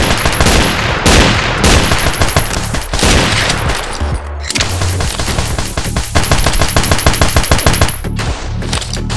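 A machine gun fires rapid bursts of loud shots.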